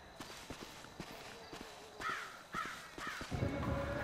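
Footsteps crunch softly on dry ground.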